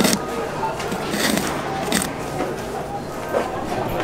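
A hand pulls a wipe from a dispenser with a soft rustle.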